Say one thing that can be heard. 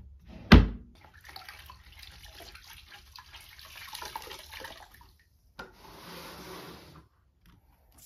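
Water splashes and drips as a cloth is wrung out in a bucket.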